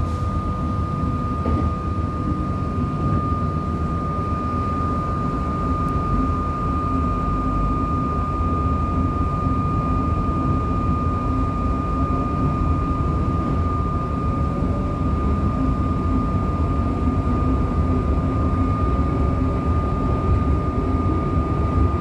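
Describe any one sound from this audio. Another train passes close by outside the window.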